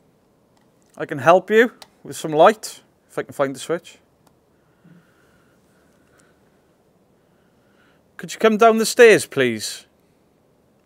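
A man speaks quietly and close by, in short bursts.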